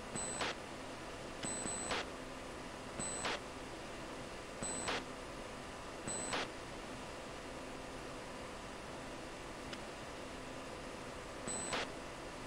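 A jet engine hums steadily from inside the cockpit.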